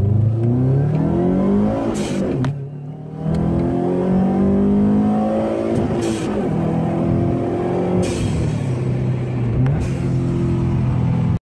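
A car engine revs hard as the car accelerates, rising in pitch through each gear.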